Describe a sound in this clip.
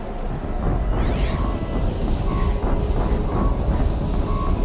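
An electronic scanning tone pulses and chirps.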